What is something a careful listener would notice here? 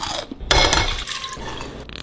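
Water pours into a glass pot.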